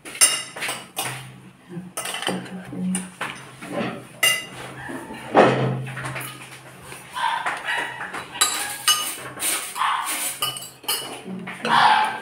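A spoon clinks against a ceramic dish.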